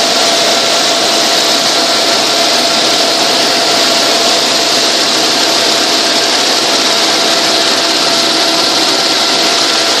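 An aircraft engine drones loudly and steadily close by.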